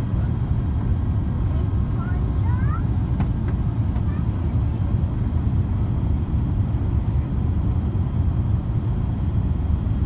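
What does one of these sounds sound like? A jet engine roars steadily with a deep, loud rumble.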